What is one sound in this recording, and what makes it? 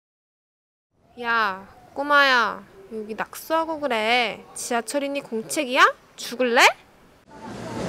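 A young woman speaks sharply nearby.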